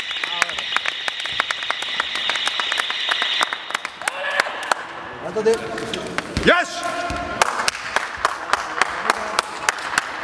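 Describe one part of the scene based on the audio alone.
Players clap their hands repeatedly.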